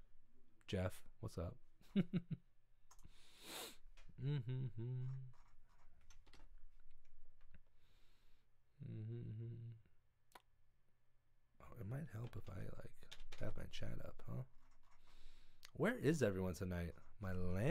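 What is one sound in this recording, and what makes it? A young man talks casually and closely into a microphone.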